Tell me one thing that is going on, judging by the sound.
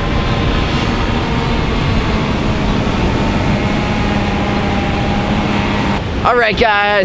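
A paramotor engine drones steadily overhead.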